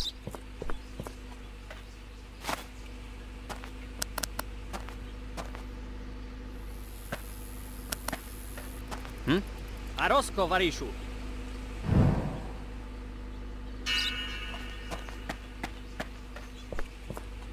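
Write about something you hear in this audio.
Footsteps crunch over gravel and grass.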